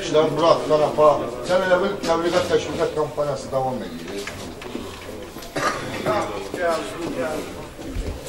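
A man speaks loudly and with animation, close by.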